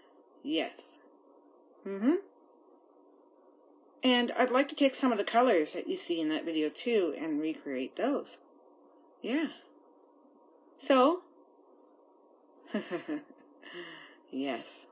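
A woman speaks close up, in halting bursts with pauses.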